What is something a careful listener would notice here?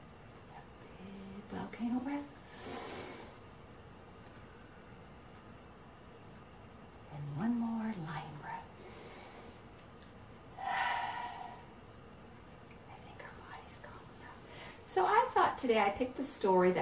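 A middle-aged woman speaks calmly and slowly, close by.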